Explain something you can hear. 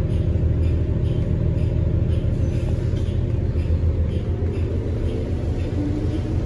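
A bus engine rumbles steadily from inside the cabin.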